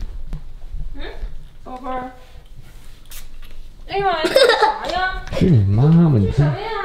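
A young boy talks excitedly up close.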